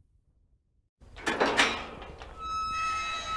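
A metal gate rattles and creaks as it swings.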